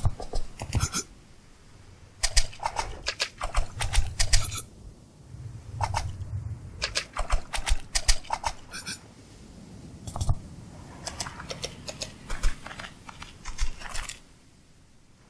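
Water splashes and sloshes as a swimmer strokes through it.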